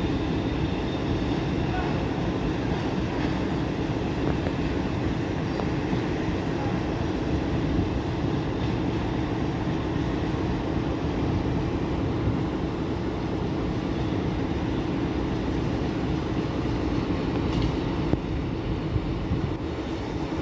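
Wind rumbles steadily across an open outdoor space.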